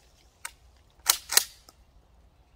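A shotgun is pumped with a quick metallic clack.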